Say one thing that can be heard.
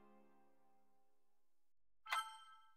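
A game-over tune fades out.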